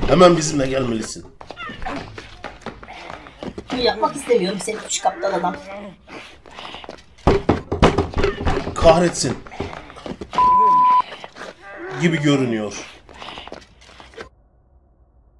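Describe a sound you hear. Clothing rustles and bodies knock together in a struggle.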